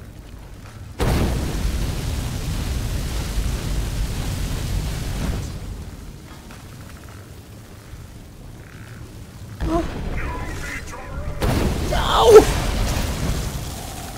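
A burst of fire roars loudly.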